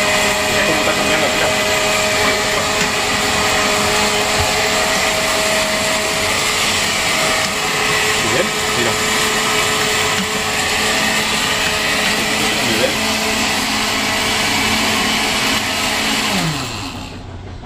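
Noodles sizzle and crackle as they fry in a pan.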